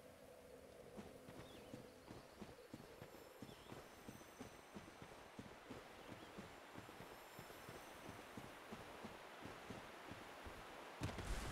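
Armoured footsteps thud quickly on stone and earth.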